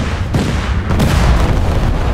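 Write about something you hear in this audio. A shell explodes with a loud blast.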